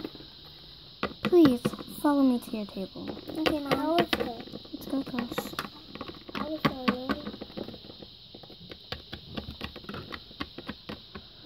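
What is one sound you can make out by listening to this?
Small plastic toys tap and click on a hard surface.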